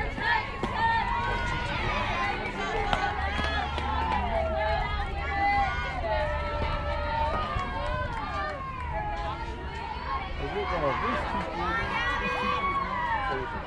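Young girls shout and cheer outdoors.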